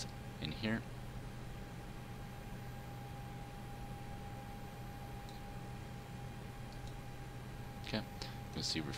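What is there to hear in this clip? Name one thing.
A steady electrical hum and whine drone on.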